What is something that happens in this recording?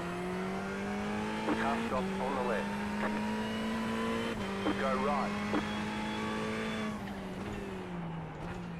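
A race car engine drones steadily, with pitch dropping at each gear shift.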